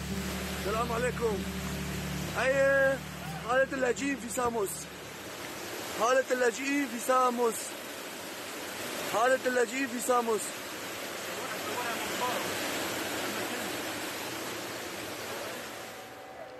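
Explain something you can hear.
Floodwater rushes and churns loudly past.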